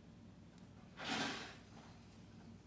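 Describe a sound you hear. A thread softly rasps as it is pulled through thick fabric.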